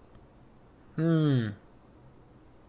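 A young man exclaims briefly with a falling voice, close to a microphone.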